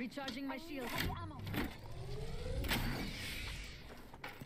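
A device charges up with a rising whir.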